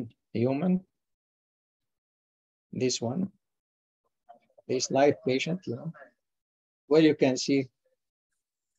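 A man narrates calmly through a microphone, in short phrases with pauses.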